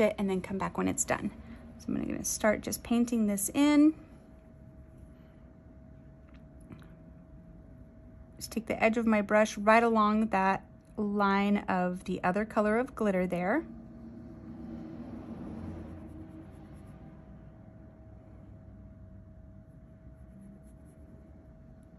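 A small brush strokes softly across a surface.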